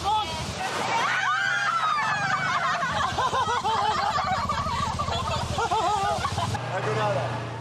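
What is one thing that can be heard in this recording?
A man laughs loudly.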